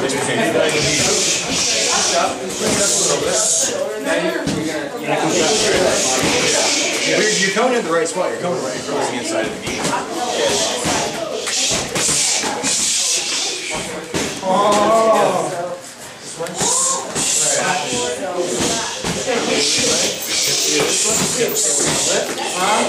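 Gloves thump against punch pads in quick bursts.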